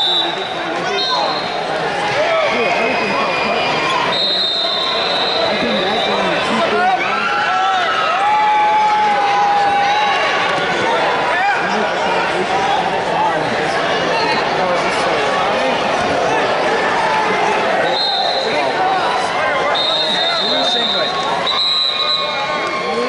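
A large crowd cheers and shouts, echoing in a big hall.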